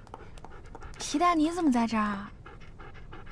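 A young woman calls out in surprise, a little way off.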